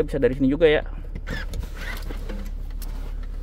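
A seat latch clicks.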